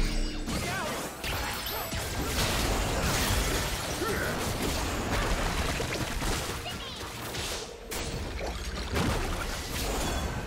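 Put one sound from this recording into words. Game spell effects whoosh, blast and clash in quick bursts.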